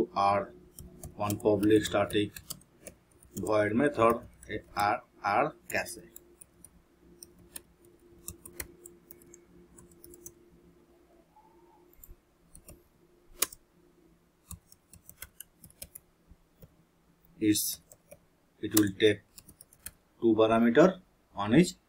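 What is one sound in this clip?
Keyboard keys click as someone types.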